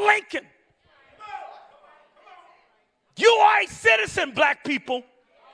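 A man preaches forcefully into a microphone, heard through loudspeakers in a large echoing hall.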